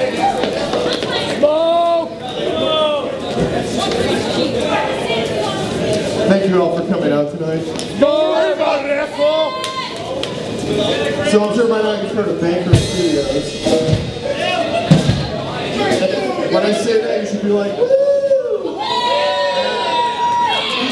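Drums pound and cymbals crash.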